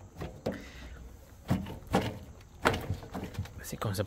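A loose plastic bumper piece clacks as a hand moves it.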